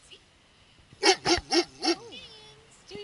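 A dog barks sharply several times close by.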